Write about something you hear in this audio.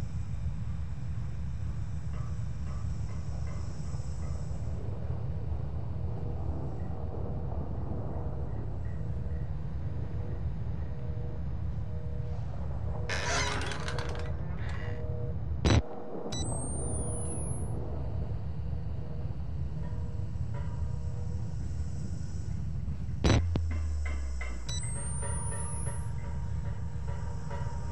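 Footsteps walk slowly along a hard floor.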